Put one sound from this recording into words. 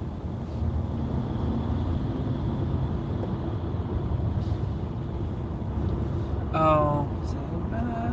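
A car's engine and tyres hum steadily from inside while driving fast on a highway.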